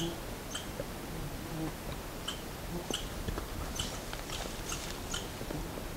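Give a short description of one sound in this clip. A bear's paws rustle and crunch through dry grass.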